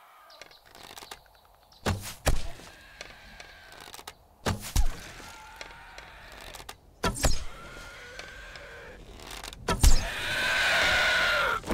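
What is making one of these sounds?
A bow twangs sharply as arrows are shot.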